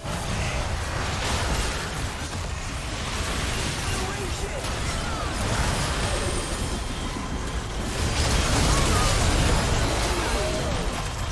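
Magic spells whoosh and crackle in a hectic battle.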